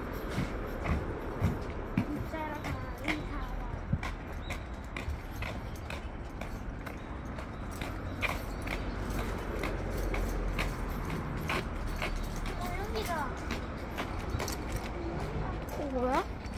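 Footsteps patter on a path outdoors.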